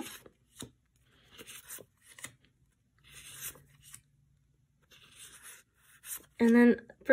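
Sticker sheets rustle softly as they are shuffled by hand.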